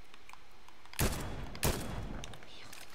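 A sniper rifle fires twice in a video game.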